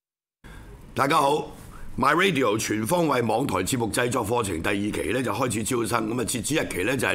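An older man speaks steadily into a microphone.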